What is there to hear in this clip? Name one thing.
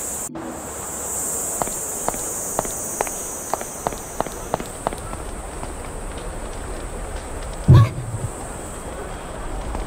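Flames roar and crackle nearby.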